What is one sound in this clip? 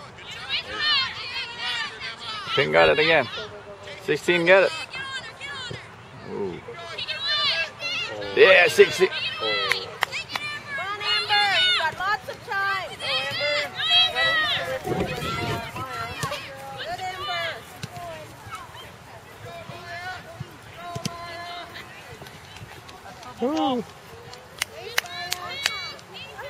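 A woman nearby shouts encouragement loudly and excitedly.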